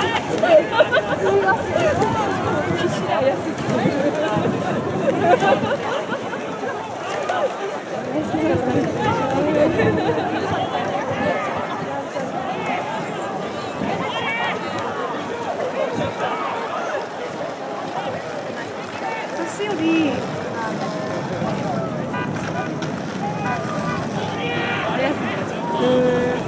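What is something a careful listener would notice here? Young men shout rhythmic calls to rowing crews from the water.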